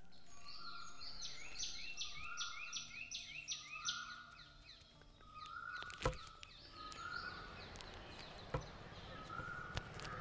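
A wooden ladder scrapes and knocks against a wall.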